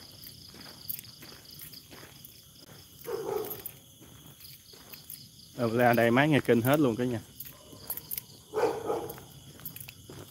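Footsteps crunch on a dirt track.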